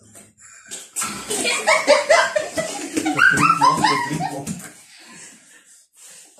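A boy laughs loudly close by.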